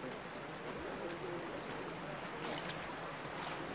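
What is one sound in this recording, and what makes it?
River water flows and laps gently.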